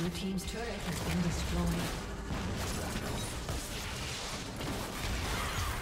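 Magic spells whoosh and burst in a video game battle.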